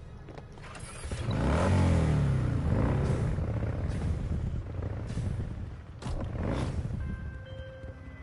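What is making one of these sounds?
A motorcycle engine roars as it speeds along.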